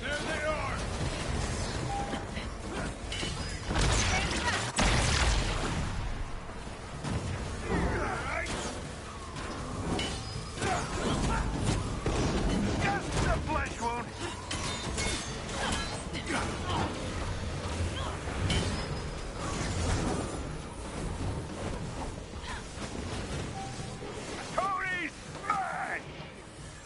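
Gunfire and laser blasts crackle in quick bursts.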